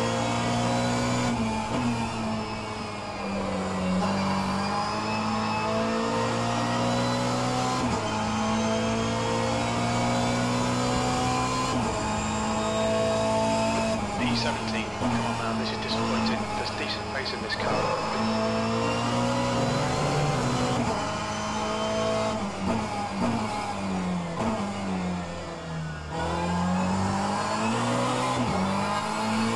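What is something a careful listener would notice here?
A racing car engine roars steadily through a simulator, rising and falling in pitch with gear changes.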